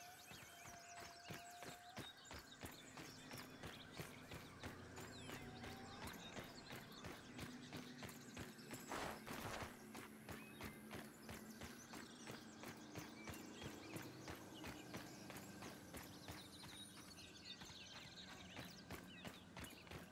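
Footsteps patter quickly over soft dirt.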